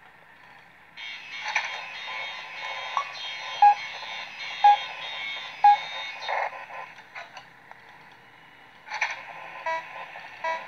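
Static crackles and hums from a video game through a speaker.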